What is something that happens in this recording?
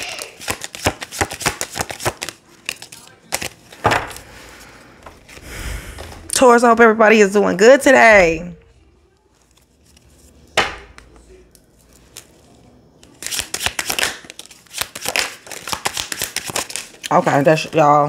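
Playing cards riffle and flick rapidly.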